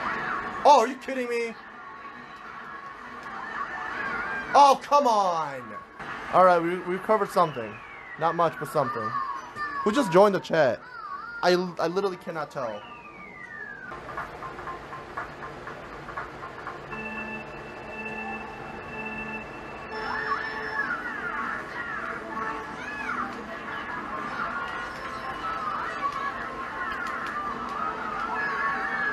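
Video game music plays from a television.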